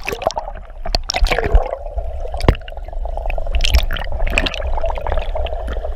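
Water gurgles and bubbles underwater.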